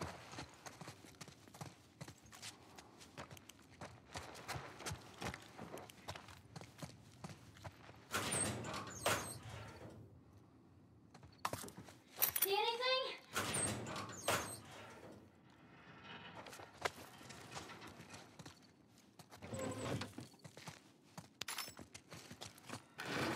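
Footsteps crunch over scattered debris.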